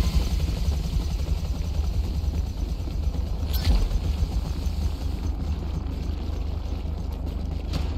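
Footsteps run across a metal deck.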